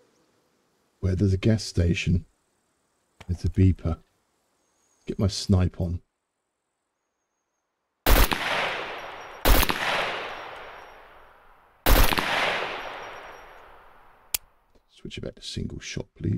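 A middle-aged man speaks into a close microphone in short bursts.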